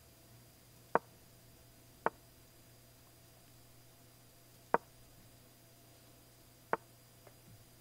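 A short, sharp click sounds several times as chess pieces are moved.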